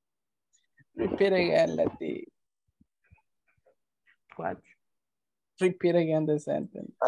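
A woman speaks calmly over an online call, in short phrases.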